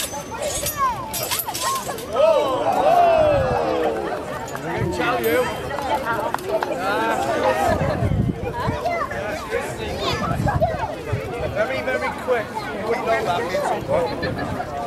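A man speaks loudly to an audience outdoors.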